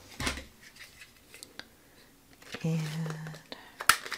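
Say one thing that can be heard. A plastic punch clicks and thuds as paper is cut.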